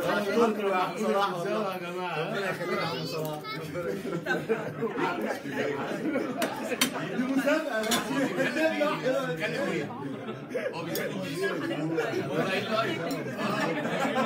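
A crowd of men and women talk and laugh loudly nearby, close to the microphone.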